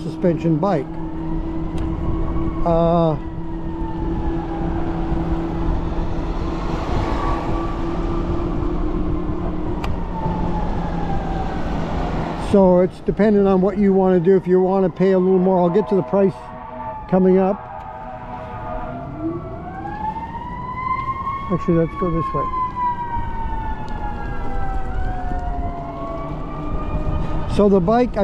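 An electric motor whines, rising and falling in pitch as the bike speeds up and slows down.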